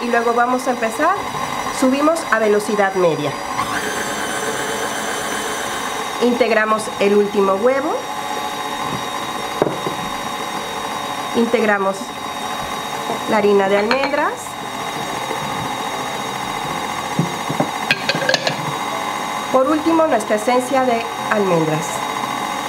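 A stand mixer whirs steadily.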